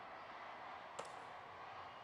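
A small tube taps down on a hard surface.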